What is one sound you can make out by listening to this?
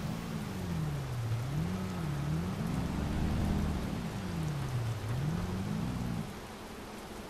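A boat engine drones with a wavering pitch.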